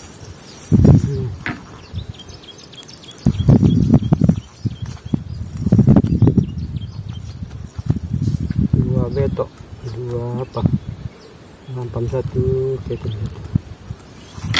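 A fishing net rustles as hands pull it out of dry grass and soil.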